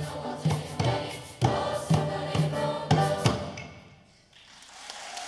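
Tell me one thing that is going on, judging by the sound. A large choir sings loudly in an echoing hall and stops on a final chord.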